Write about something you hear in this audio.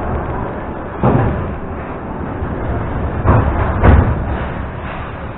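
Train doors slide open with a thud.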